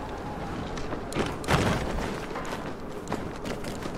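Footsteps tap on a metal frame during a climb.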